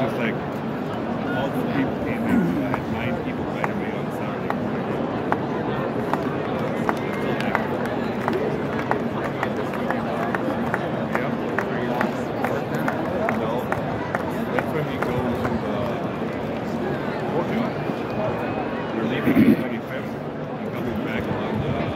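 A large stadium crowd murmurs and chatters all around.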